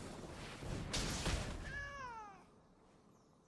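A magical whooshing effect sweeps and chimes.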